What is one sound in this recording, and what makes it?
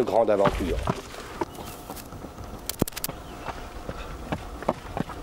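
Running footsteps thud and crunch on a dirt trail.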